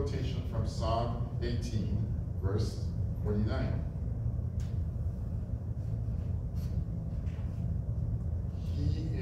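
A man speaks calmly at a distance in a room with some echo.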